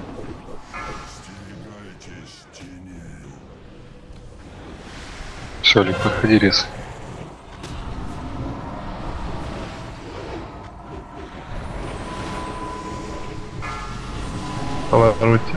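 Magic spells whoosh and crackle amid the clash of a fantasy battle.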